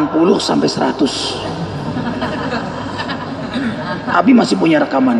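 A man speaks with animation into a microphone in an echoing hall.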